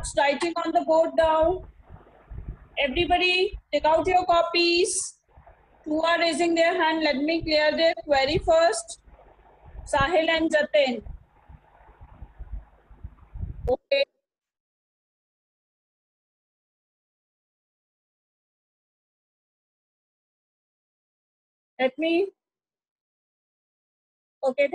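A young woman speaks with animation, heard through an online call.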